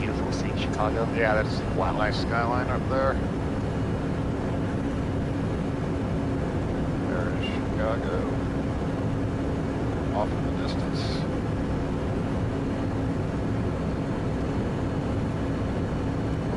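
A light aircraft engine drones steadily in the cabin.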